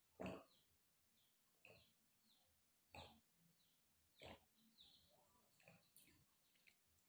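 A woman gulps down a drink in loud swallows.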